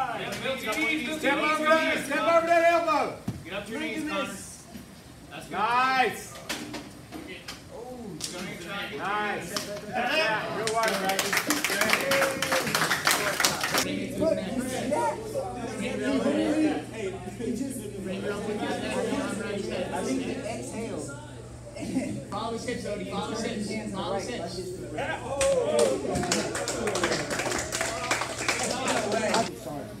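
A man shouts instructions nearby in an echoing hall.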